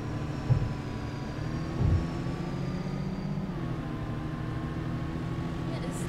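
A diesel bus engine hums while driving along.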